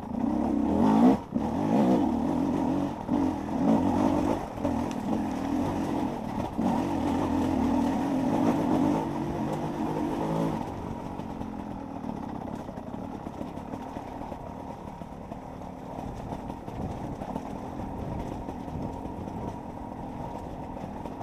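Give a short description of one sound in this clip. A dirt bike engine roars and revs up close.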